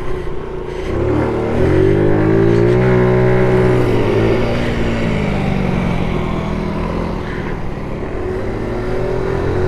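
A scooter engine revs up and its pitch rises and falls.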